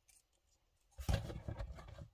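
A plastic toy knocks softly onto a soft surface.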